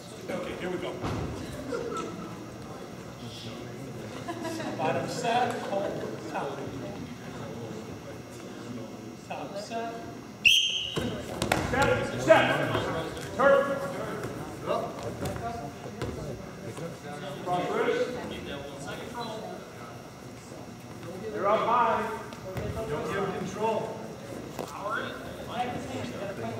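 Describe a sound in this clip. Men and women in the stands shout encouragement across an echoing gym.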